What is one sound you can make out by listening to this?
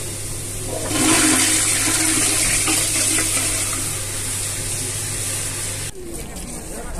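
A toilet flushes with a loud rush of water.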